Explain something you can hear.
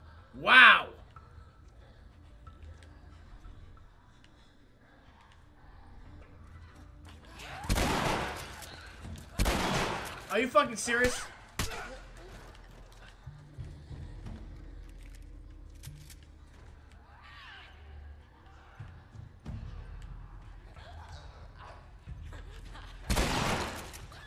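A young man talks into a close microphone, with bursts of excitement.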